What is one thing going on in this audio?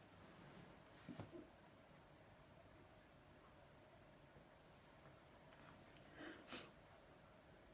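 A woman sobs quietly and sniffles close by.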